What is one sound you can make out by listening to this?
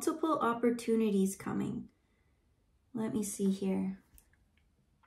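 A young woman speaks softly and calmly, close to a microphone.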